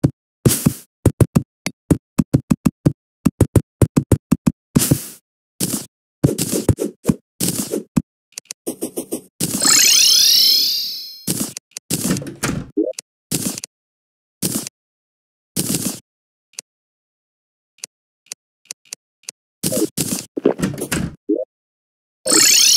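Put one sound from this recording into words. Short chiming game sound effects pop in quick succession.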